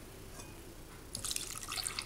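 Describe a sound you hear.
Milk pours into a bowl.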